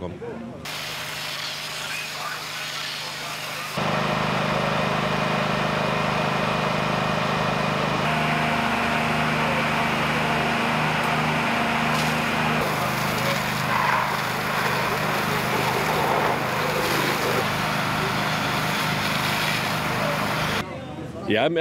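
Water hisses and splashes from fire hoses.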